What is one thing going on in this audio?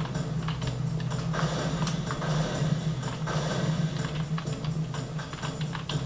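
Keys on a computer keyboard click rapidly.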